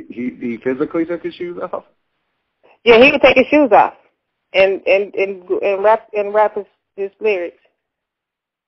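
A young woman sings into a microphone over loudspeakers.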